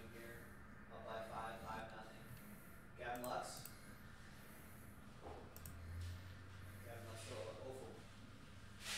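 A young man speaks calmly into a microphone in short bursts.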